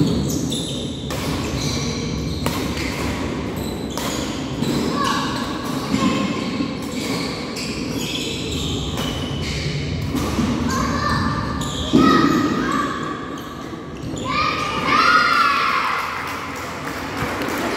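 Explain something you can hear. Rackets strike a shuttlecock back and forth in an echoing hall.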